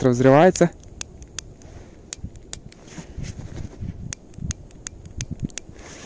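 A small device clicks repeatedly in a hand.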